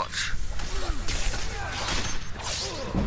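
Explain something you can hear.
Metal blades clash in a fight.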